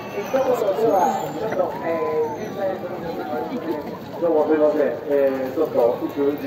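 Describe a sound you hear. A man calls out in a drawn-out chanting voice through a loudspeaker, outdoors.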